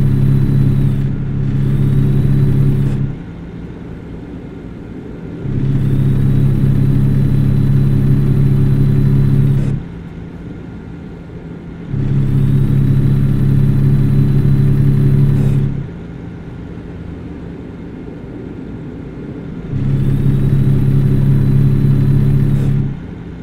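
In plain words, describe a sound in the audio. A truck engine drones at a steady pitch.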